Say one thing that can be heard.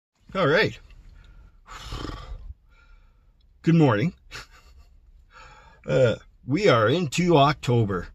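An elderly man talks calmly and close up, in short bursts.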